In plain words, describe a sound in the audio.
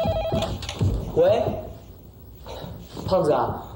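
A young man speaks into a telephone nearby.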